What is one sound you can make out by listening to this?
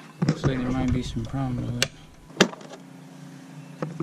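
A plastic cover snaps off a box.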